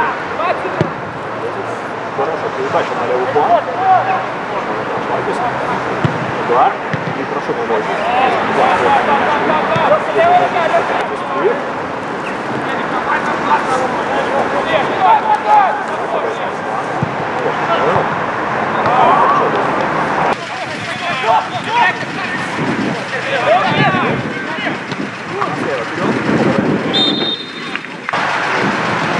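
Young men shout calls to each other across an open pitch.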